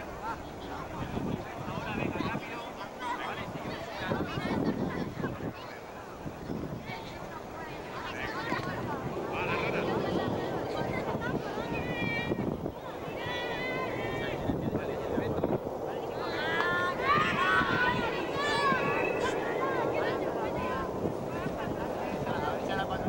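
Young children shout and chatter outdoors.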